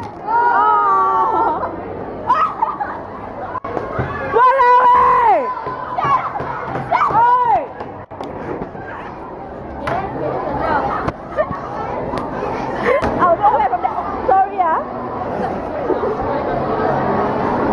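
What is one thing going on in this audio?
A crowd of children chatters in a busy, echoing room.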